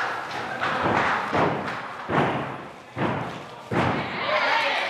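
A gymnast's feet thud on a balance beam.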